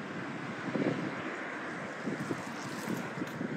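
A car passes close by.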